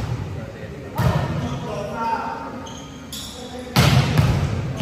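A volleyball thumps off players' arms in a large echoing hall.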